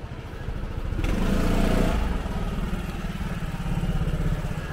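A motor scooter engine buzzes close by as the scooter rides past.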